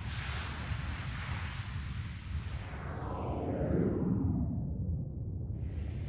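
An energy barrier roars with a rushing whoosh that sinks lower in pitch and fades away.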